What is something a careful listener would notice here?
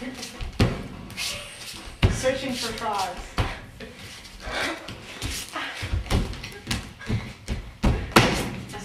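Feet thump and stomp on a wooden floor.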